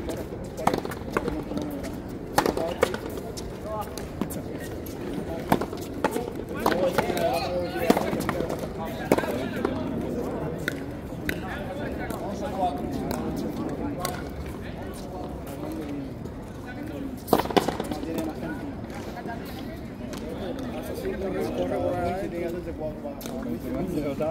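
Rackets strike a ball with sharp cracks that echo in a large open court.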